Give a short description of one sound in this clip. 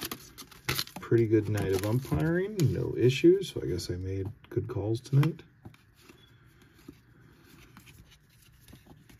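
Stiff trading cards slide and flick between fingers.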